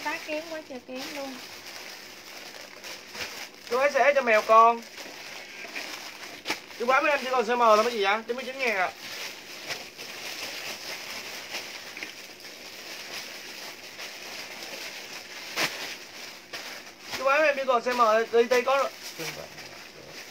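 Plastic wrapping crinkles in a woman's hands.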